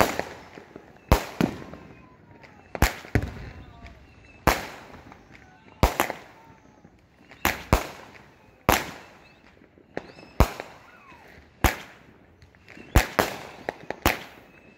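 Fireworks crackle and fizz after each burst.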